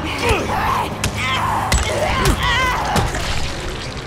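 Weapon blows strike flesh with sharp wet thuds.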